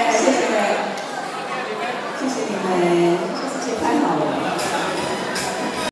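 A woman sings into a microphone over a loudspeaker in a large echoing hall.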